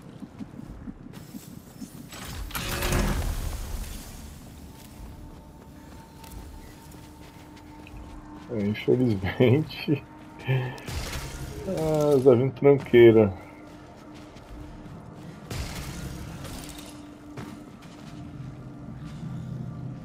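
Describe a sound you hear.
Footsteps crunch over rubble.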